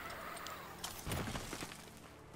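A heavy thud sounds as someone lands on the ground.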